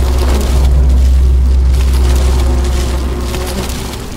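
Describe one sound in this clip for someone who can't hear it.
A bag is picked up with a rustle.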